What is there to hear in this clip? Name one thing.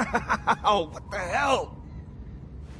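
A young man exclaims in surprise close by.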